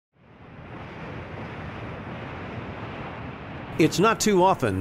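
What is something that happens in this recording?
A large ocean wave curls over and roars.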